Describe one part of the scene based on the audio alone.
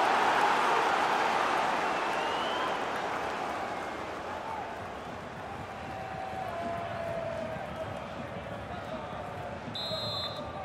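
A large stadium crowd roars and then settles to a steady murmur.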